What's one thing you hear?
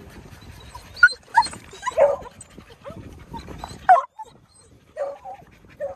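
A pug pants.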